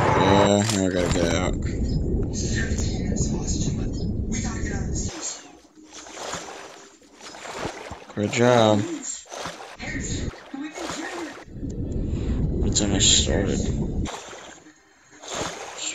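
Water splashes as a swimmer strokes.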